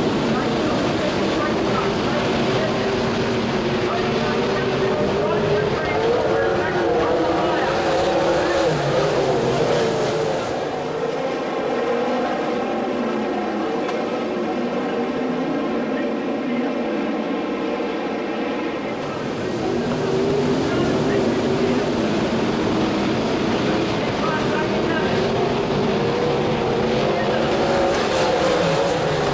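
V8 winged sprint cars roar by at full throttle.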